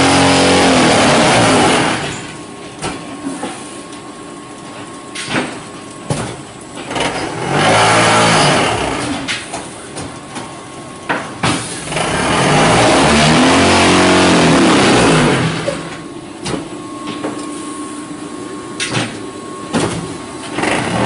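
A block-making machine rumbles and clanks as it runs.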